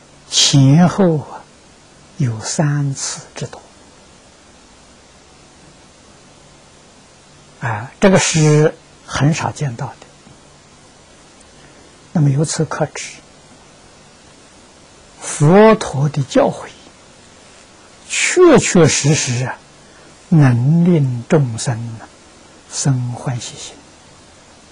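An elderly man speaks calmly and slowly into a close microphone, with long pauses between phrases.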